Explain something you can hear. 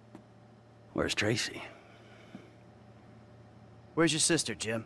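A middle-aged man asks questions in a tense voice.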